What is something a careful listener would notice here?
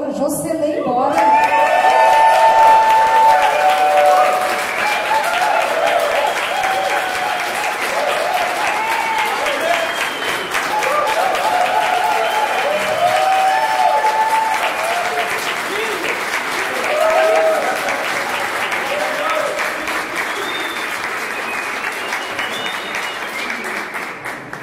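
A large choir sings together in a reverberant hall.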